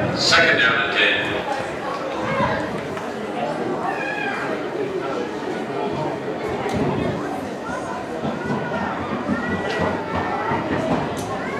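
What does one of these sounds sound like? Young players shout to each other.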